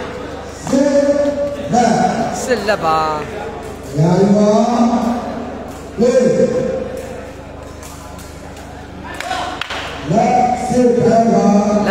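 A crowd of spectators shouts and cheers loudly in bursts.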